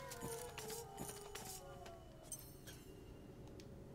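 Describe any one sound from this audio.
A short chime sounds as an item is picked up.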